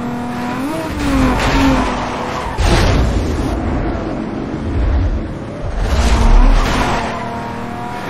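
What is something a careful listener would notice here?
Tyres rumble and skid on a dirt road.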